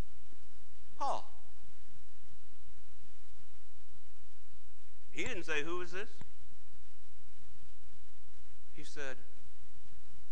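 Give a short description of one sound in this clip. A middle-aged man speaks in short bursts through a microphone in an echoing room.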